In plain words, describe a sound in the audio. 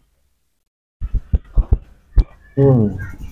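Hands tap and rub on a man's scalp close to a microphone.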